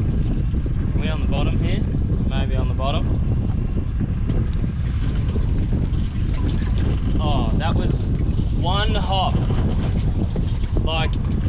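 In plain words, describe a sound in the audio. A fishing reel's drag whirs and squeals in short bursts.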